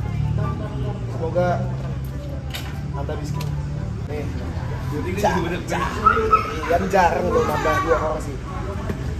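Young men laugh together.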